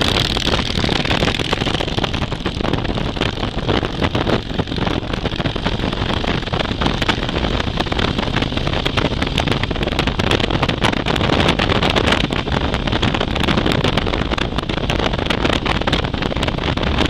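Wind roars loudly against the rider.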